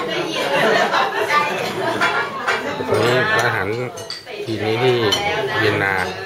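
A ladle clinks against a bowl.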